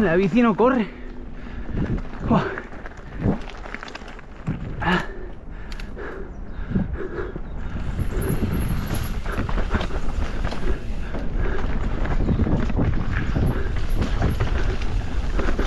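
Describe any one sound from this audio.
Bicycle tyres crunch and rumble over a rough gravel and dirt trail.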